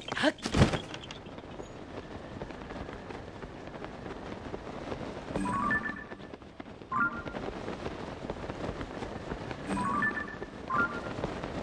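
Wind rushes past while gliding.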